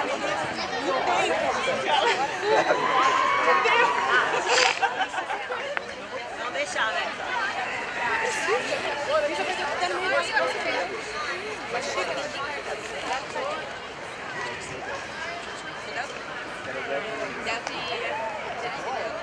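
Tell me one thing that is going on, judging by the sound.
A crowd of spectators shouts and cheers at a distance outdoors.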